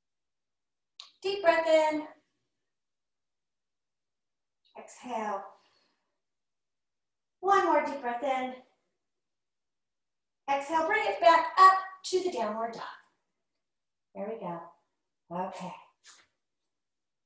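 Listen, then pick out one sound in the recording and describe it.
A woman speaks calmly in short phrases, close to a microphone.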